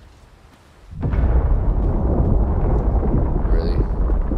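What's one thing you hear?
Rocks rumble and crash down in a landslide.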